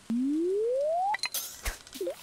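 A rising electronic tone climbs steadily.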